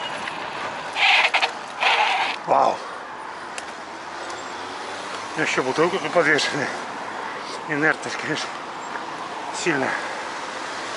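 A bicycle rattles and clatters over bumps in the road.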